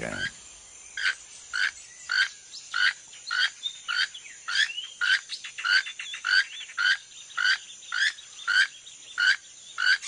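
A toucan croaks over and over in a steady rhythm.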